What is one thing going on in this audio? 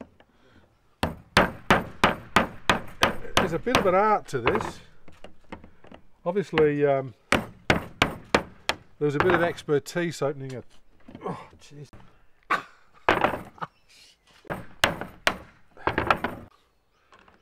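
A hammer taps a chisel into a metal tin with sharp clinks.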